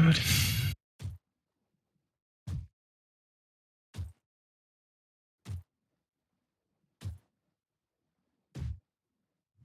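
Dull blows thud at a steady pace in a fight.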